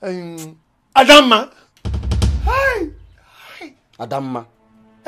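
A young man answers in a strained, pained voice.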